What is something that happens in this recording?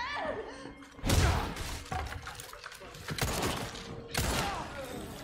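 Gunshots bang loudly with a short echo.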